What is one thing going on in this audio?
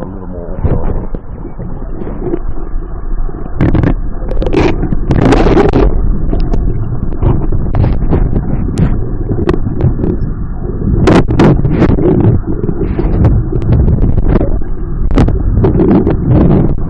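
Water rushes and gurgles, heard muffled underwater.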